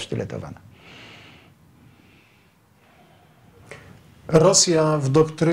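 An elderly man speaks calmly and close up into a microphone, with pauses.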